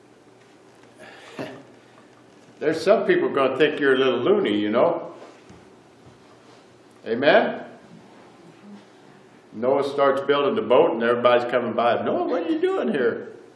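A middle-aged man speaks with animation, pausing between phrases.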